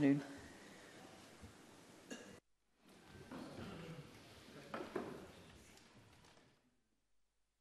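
Men and women murmur quietly in a large echoing hall.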